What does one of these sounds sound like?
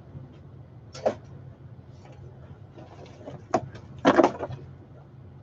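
Plastic parts and cables clatter as they are handled.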